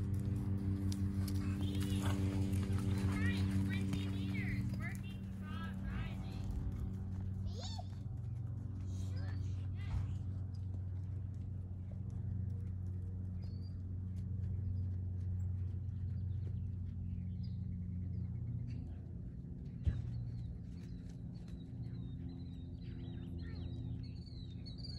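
A horse trots with soft thuds of hooves on sand.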